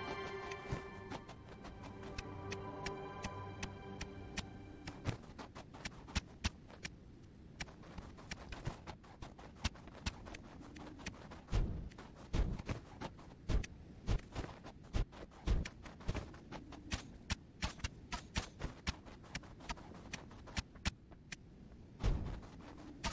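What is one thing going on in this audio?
Arrows from a bow fire and strike with sharp thwacks.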